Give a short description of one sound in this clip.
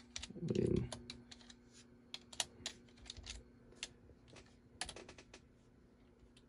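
Computer keyboard keys click and tap.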